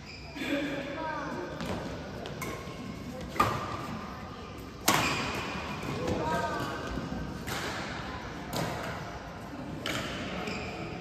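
Rackets strike a shuttlecock with sharp pops in an echoing hall.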